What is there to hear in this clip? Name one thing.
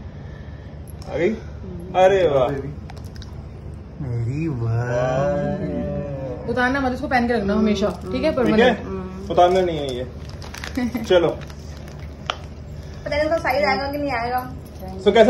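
A woman talks nearby in a calm, chatty voice.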